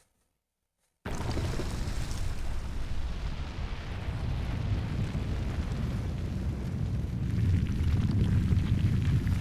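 Dirt and rocks scatter and crumble around a rising stone.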